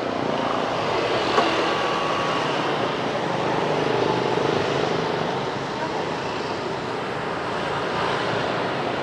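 Motorbike engines putter past nearby.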